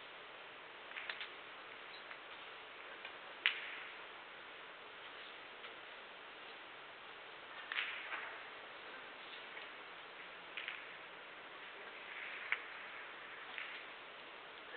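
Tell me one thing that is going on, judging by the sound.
Snooker balls click as they knock together.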